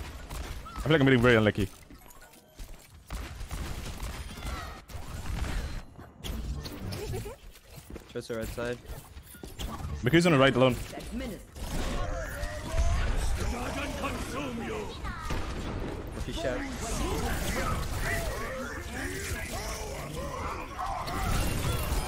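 Energy pistols fire rapid bursts of shots.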